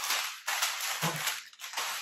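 Plastic wrapping rustles and crinkles in hands.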